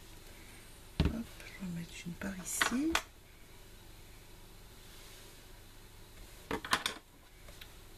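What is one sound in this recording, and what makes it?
Objects are set down on a table with soft knocks.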